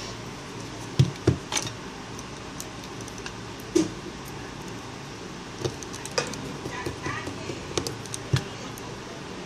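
Plastic clicks and taps as a phone is handled.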